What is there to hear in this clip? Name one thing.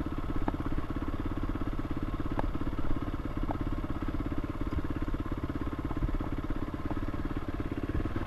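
A motorcycle engine idles with a steady, rapid putter close by.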